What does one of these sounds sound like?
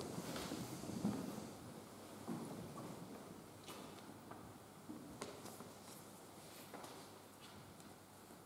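Footsteps tread slowly on a stone floor in an echoing hall.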